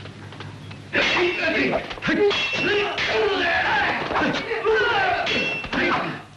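Men shout and grunt loudly while fighting.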